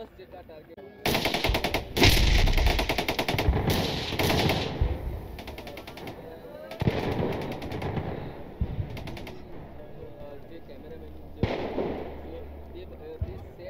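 Explosions boom in the distance, one after another, rumbling and echoing across open ground.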